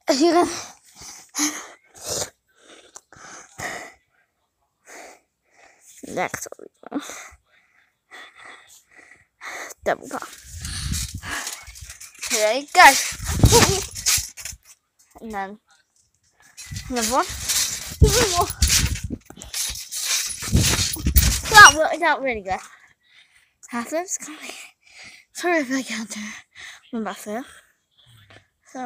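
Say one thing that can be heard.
A young girl talks close to the microphone.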